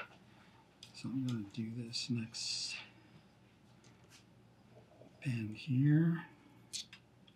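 An elderly man speaks calmly and close by.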